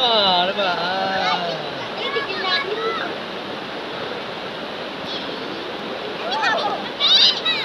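A stream of shallow water flows and splashes over rocks.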